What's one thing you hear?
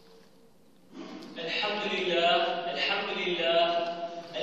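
A man chants in a loud, melodic voice through a loudspeaker in a large echoing hall.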